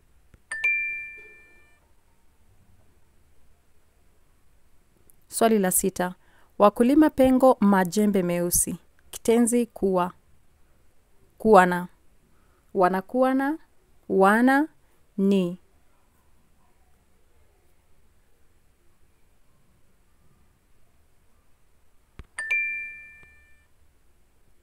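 A bright two-note chime rings out and fades.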